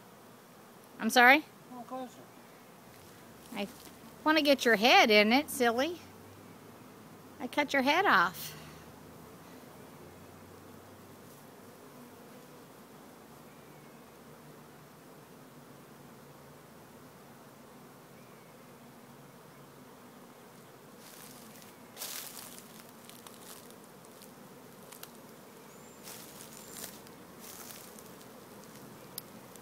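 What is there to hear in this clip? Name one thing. Bees buzz in a low, steady hum.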